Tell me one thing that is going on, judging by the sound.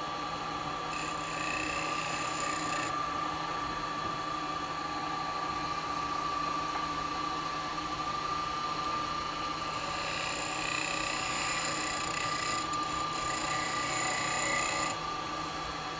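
A chisel scrapes against spinning wood in bursts.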